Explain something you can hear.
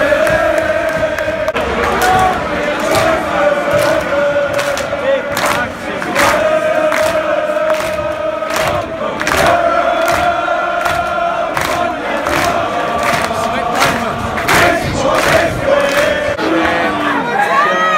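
Football fans clap their hands in rhythm.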